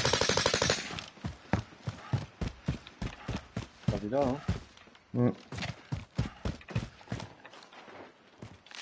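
Footsteps run quickly over dry ground and rock.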